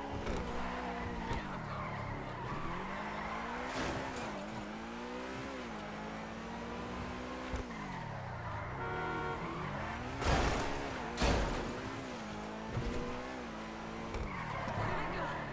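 Tyres screech as a car skids around corners.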